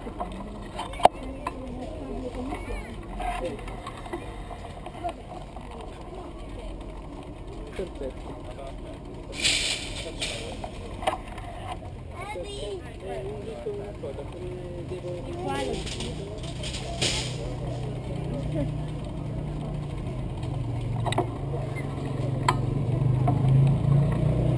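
A busy outdoor market murmurs with the chatter of many people nearby.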